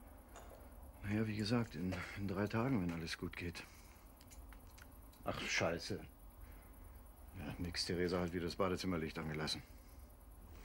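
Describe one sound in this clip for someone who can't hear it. An older man talks calmly into a phone close by.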